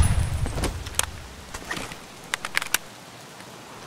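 Metal clicks as a rifle is reloaded.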